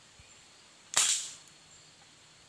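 A gun fires once with a sharp crack that rings out briefly.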